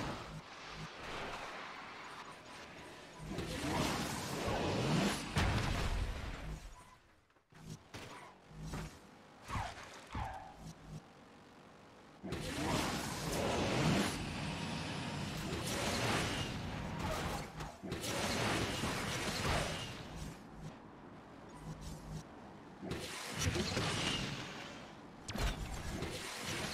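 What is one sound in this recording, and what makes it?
A race car engine roars at high speed.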